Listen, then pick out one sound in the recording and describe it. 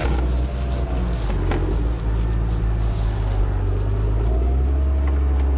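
A large tree trunk creaks and cracks as it bends and splits.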